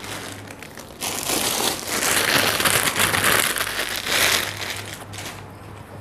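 A plastic wrapper crinkles and rustles as clothes are unpacked.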